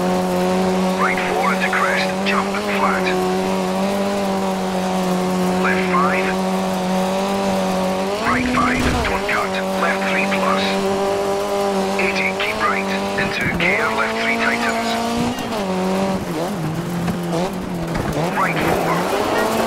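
Tyres squeal briefly as a car slides through bends.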